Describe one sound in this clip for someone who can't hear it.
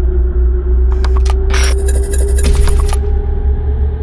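Harsh electronic static crackles briefly.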